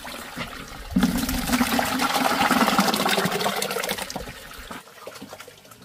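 Thick watery mash pours and splashes into a plastic bucket.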